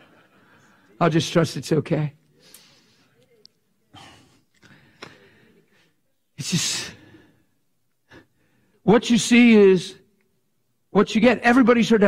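An elderly man speaks with animation through a microphone in a large echoing hall.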